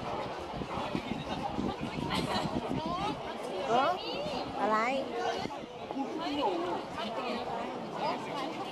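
A large crowd chatters and murmurs at a distance, outdoors.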